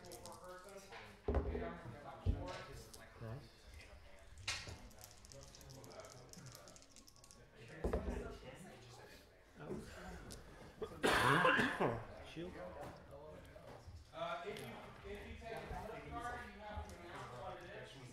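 Game pieces click and slide on a table.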